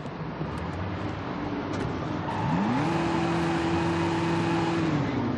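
A car engine starts and revs up.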